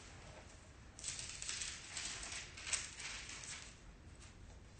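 Book pages rustle and turn.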